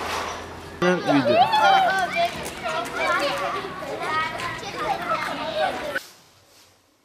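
Children shout and chatter outdoors.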